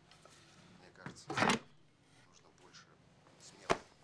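A wooden plank thuds into place across a door.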